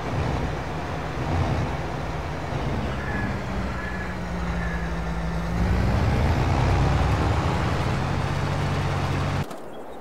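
A heavy harvester engine drones steadily.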